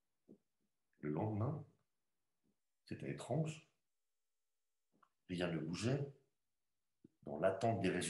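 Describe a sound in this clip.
A middle-aged man speaks calmly and haltingly over an online call.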